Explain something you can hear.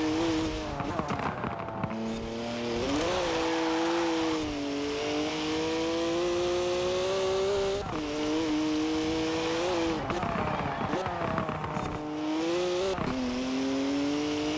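Tyres screech as a car slides through bends.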